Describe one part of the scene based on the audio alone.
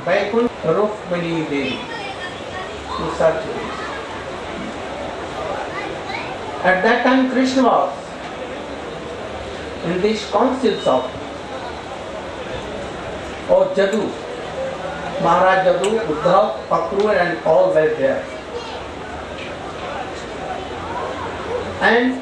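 An elderly man speaks calmly and slowly through a microphone, with long pauses.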